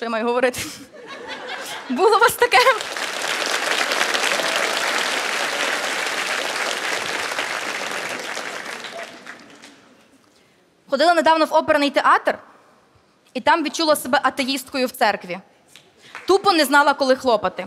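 A young woman speaks with animation into a microphone on a stage.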